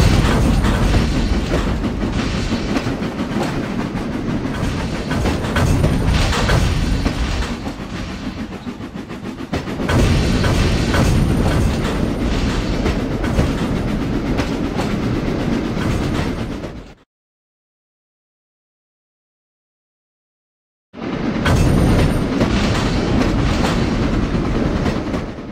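Train wheels rumble over rails.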